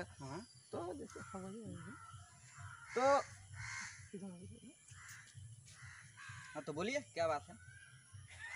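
A young man speaks into a microphone close by, with animation.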